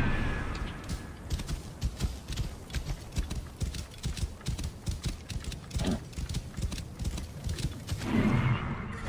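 Horse hooves pound rapidly on sand.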